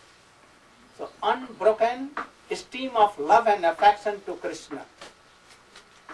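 An elderly man speaks calmly and with expression into a microphone.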